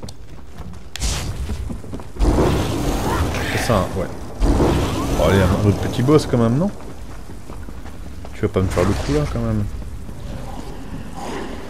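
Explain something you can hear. Electric magic crackles and zaps in bursts.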